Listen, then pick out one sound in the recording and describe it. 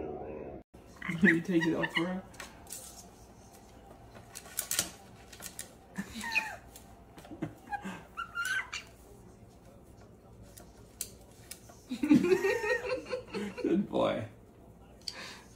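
Parrots squawk and chirp in sharp bursts.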